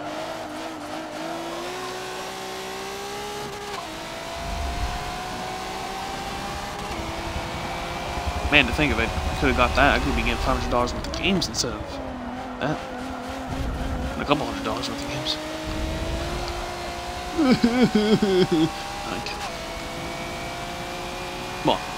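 A racing car engine roars and whines up and down through its gears.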